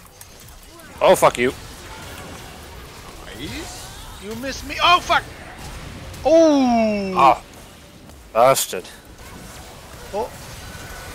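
Magic spells whoosh and burst in a video game battle.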